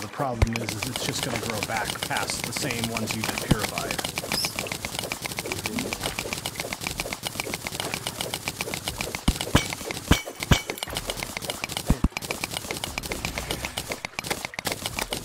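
A pickaxe chips at stone in quick, steady taps.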